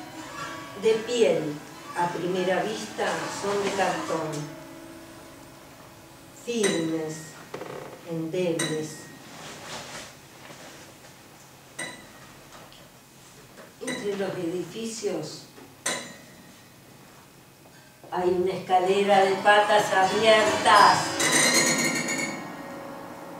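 A woman reads aloud calmly and expressively.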